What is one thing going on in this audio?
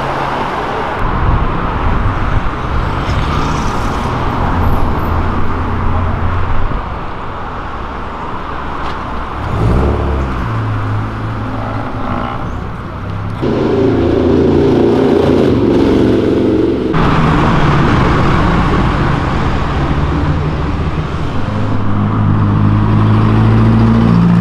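Car engines roar and rev loudly as they pass close by.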